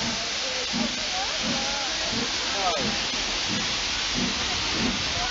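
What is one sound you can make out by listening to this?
Train wheels clack rhythmically over rail joints.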